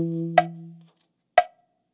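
A saxophone plays a steady low note up close.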